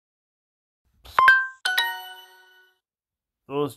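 A phone plays a short bright chime.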